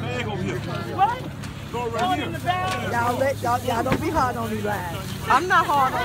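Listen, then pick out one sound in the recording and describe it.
Plastic bags rustle.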